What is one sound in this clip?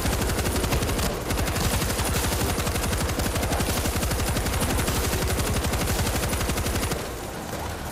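A heavy machine gun fires rapidly and continuously.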